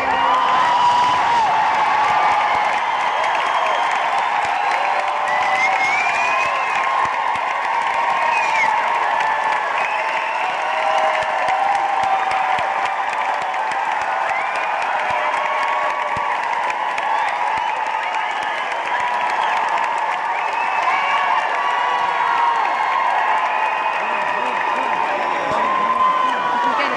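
A large crowd cheers and screams loudly in an echoing hall.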